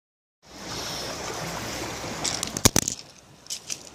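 Waves lap gently against rocks.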